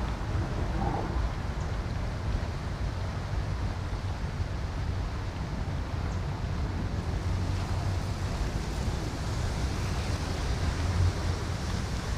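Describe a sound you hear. Water laps gently against a seawall.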